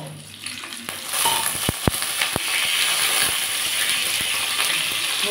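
Oil sizzles in a hot pan.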